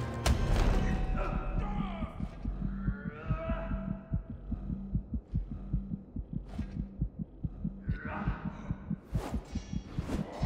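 Metal blades clash and strike in a fight.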